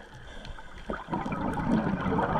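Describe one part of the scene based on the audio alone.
A diver's exhaled bubbles burble and rumble underwater.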